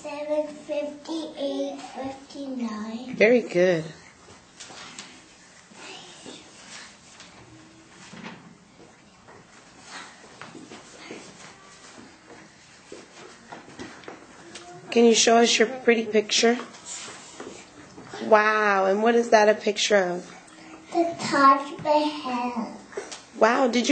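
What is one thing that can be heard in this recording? A young girl speaks into a microphone.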